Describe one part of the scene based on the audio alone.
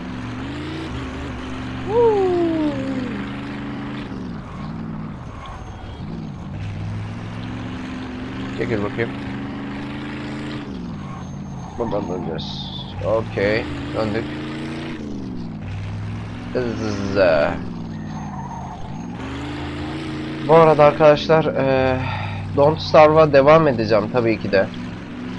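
A car engine hums steadily, rising and falling as it speeds up and slows down.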